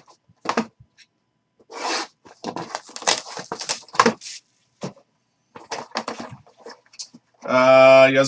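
Cardboard packaging rustles and scrapes.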